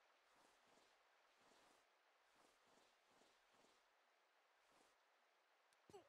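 A young man talks quietly into a close microphone.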